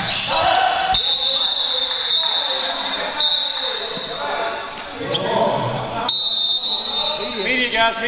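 A referee's whistle blows sharply in a large echoing gym.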